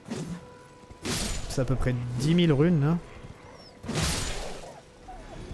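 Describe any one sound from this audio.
Heavy blows strike with sharp, swishing thuds.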